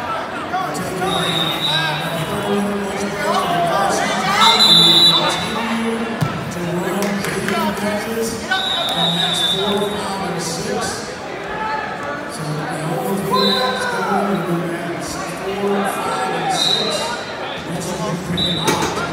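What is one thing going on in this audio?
A referee blows short whistle blasts.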